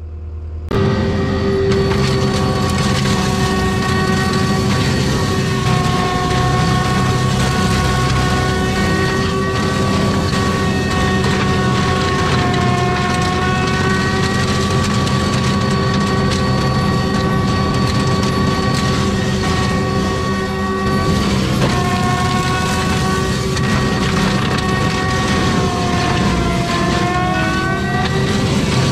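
A heavy machine's engine roars and whines steadily up close.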